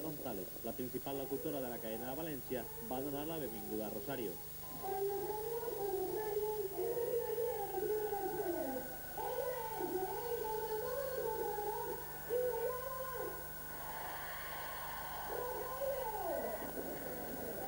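A man sings through loudspeakers at a concert.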